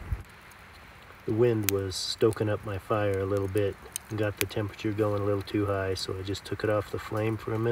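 A small wood fire crackles softly.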